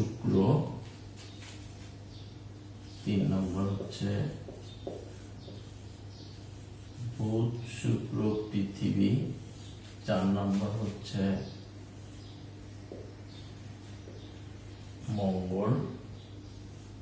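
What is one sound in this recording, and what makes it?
A man speaks calmly in short bursts, close by.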